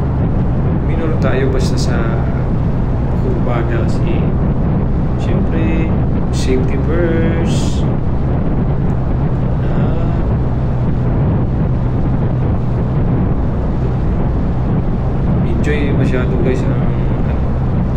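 A man talks calmly through a helmet microphone.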